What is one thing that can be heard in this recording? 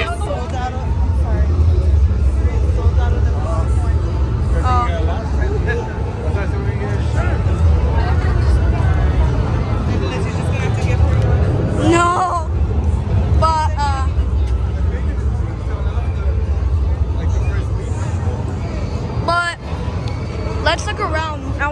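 A crowd of young men and women chatters and calls out all around outdoors.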